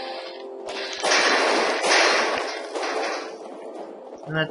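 Gunfire rattles in a loud burst.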